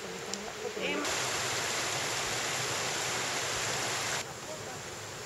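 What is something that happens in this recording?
A stream of water rushes close by.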